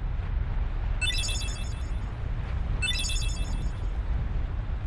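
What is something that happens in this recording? A bright chime rings as a message pops up.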